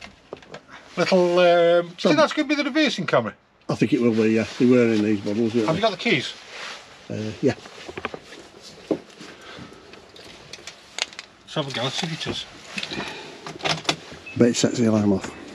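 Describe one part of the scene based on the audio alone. A man talks calmly and with animation close by.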